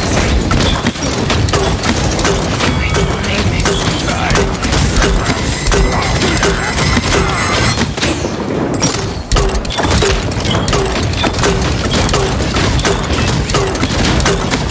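A heavy gun fires in rapid, rhythmic bursts.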